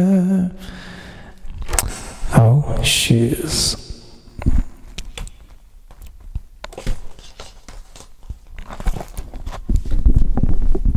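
A man speaks softly into a close microphone.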